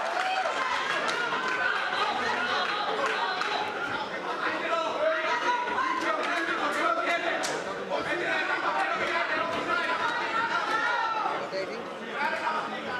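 A crowd of men and women talks and murmurs in a large room.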